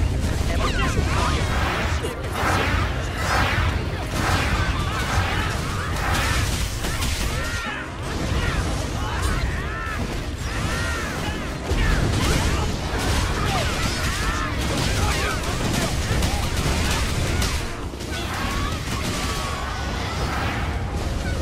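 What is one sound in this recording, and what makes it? Game combat effects crash and boom.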